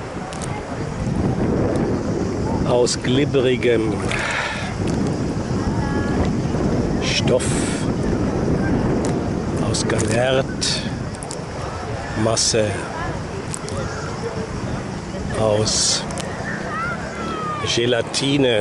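Gentle water laps and ripples close by.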